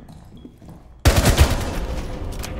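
A rifle fires a short burst of loud gunshots.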